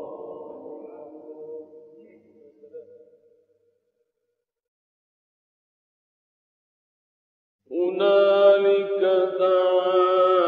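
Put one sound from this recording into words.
A man chants in long, drawn-out melodic phrases.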